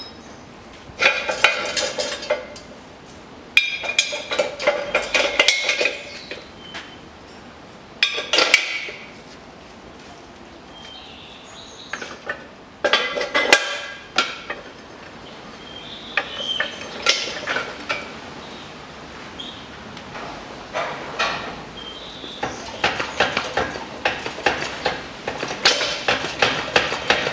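Metal parts clank and rattle against a coil spring.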